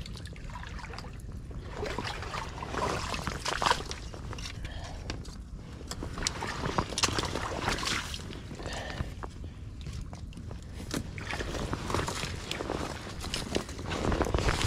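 A fish flaps and thrashes on a fishing line.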